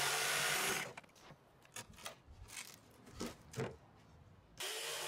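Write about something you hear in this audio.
Wooden boards knock and clatter as they are lifted apart.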